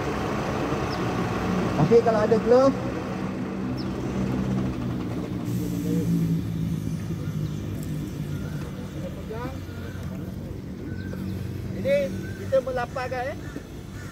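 Gas flames roar and flare steadily.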